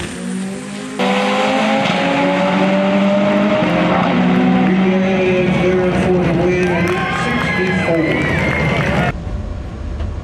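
Race car engines roar and rise in pitch, then fade into the distance.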